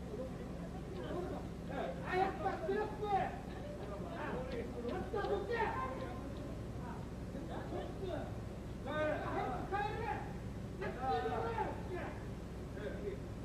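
Men shout and argue heatedly nearby, outdoors.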